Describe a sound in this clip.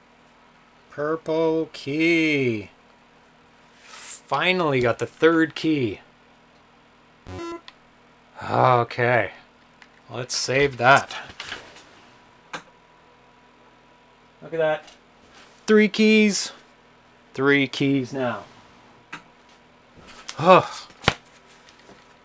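A man talks animatedly into a close microphone, in bursts with pauses.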